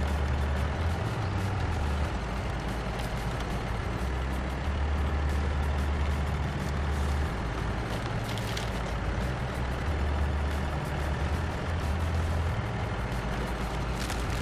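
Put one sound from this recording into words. Tyres crunch and grind over rough ground.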